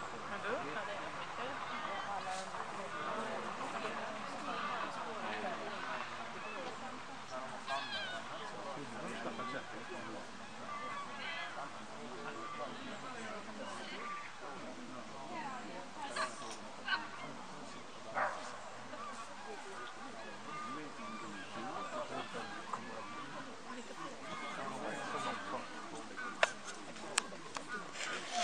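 Several adults talk at a distance outdoors.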